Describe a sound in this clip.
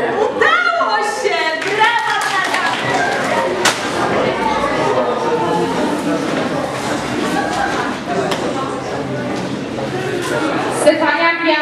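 A crowd of children chatters loudly in an echoing hall.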